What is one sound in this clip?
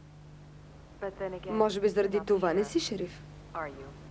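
A young woman speaks with concern, close by.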